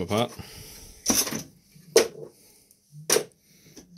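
A heavy metal block clunks down on a hard surface.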